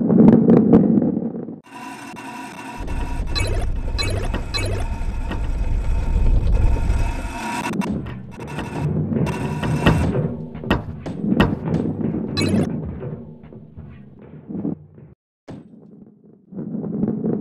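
A ball rolls along a wooden track.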